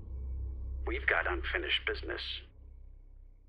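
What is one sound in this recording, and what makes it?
A man speaks calmly through a telephone earpiece.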